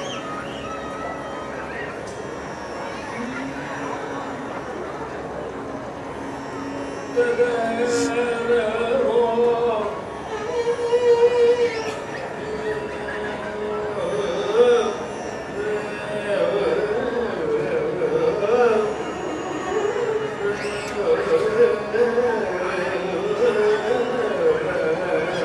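A violin plays along with the singer.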